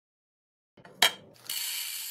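A plastic container is set down on a stone counter with a knock.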